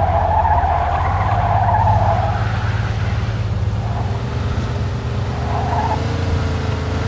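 Tyres screech on asphalt around a bend.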